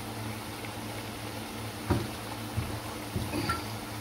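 Water pours into a pan of simmering food.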